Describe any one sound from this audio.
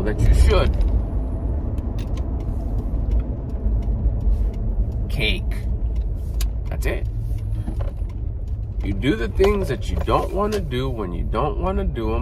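A car engine rumbles low and steady inside the cabin.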